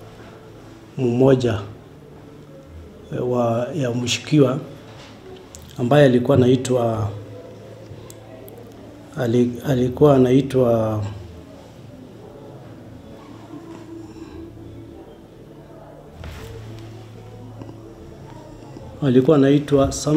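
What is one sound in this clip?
A middle-aged man speaks calmly and slowly in pauses, close to a microphone.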